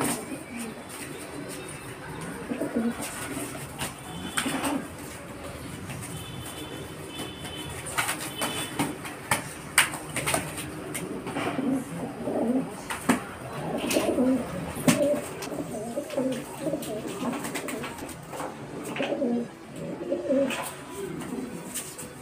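Pigeon wings flap and beat loudly in a scuffle.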